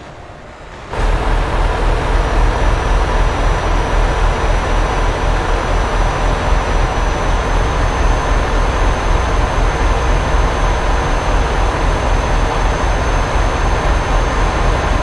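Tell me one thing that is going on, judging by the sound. A truck engine hums steadily as the truck drives along a highway.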